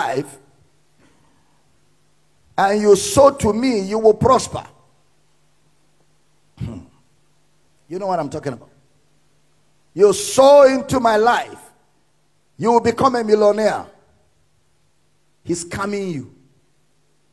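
A man preaches with emotion into a microphone, in bursts with pauses.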